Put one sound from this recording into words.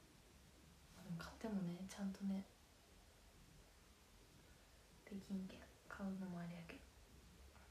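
A young woman speaks softly and close by in short phrases.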